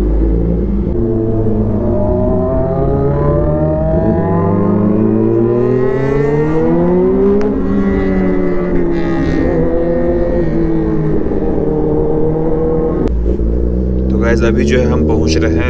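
A motorcycle engine revs up and down close by.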